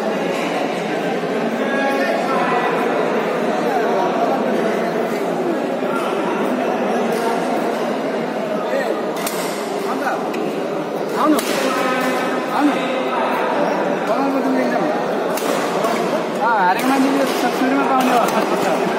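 Many people chatter in a large echoing hall.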